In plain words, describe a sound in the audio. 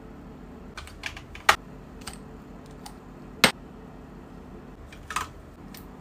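Glass and plastic bottles clink on a plastic shelf.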